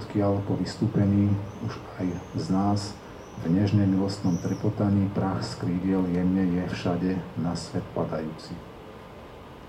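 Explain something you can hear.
A man speaks calmly into a microphone over a loudspeaker.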